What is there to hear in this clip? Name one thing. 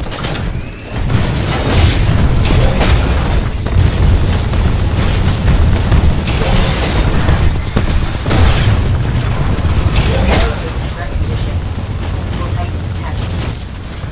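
Heavy machine guns fire in rapid bursts.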